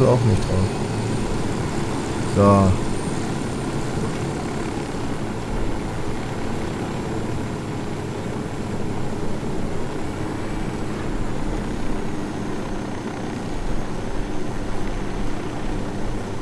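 A helicopter's rotor thumps and its engine roars steadily.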